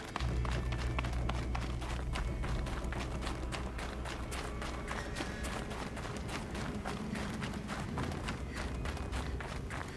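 Footsteps crunch quickly over snow and gravel.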